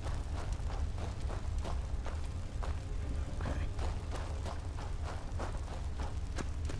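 Footsteps thud quickly and steadily on a stone floor.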